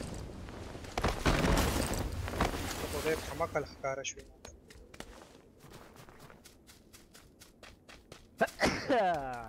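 Footsteps crunch quickly over snow and hard ground.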